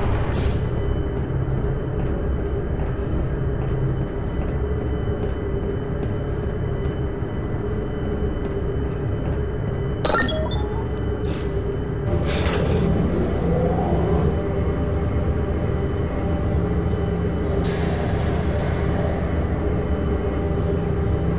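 A low electric hum drones steadily.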